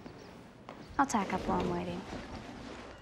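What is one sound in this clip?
A teenage girl speaks softly nearby.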